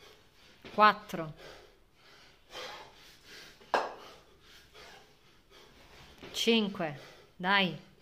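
A man grunts loudly with effort.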